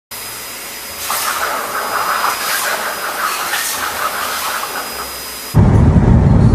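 A grooming blower blows air in a steady rush.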